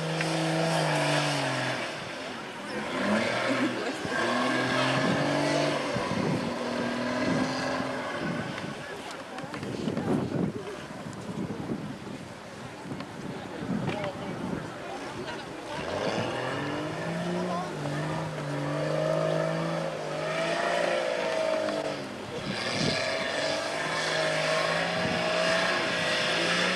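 Tyres spin and crunch on loose dirt.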